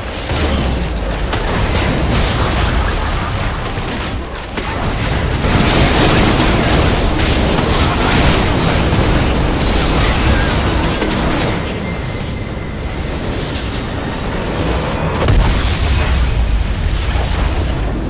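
Spell effects crash and explode in a game battle.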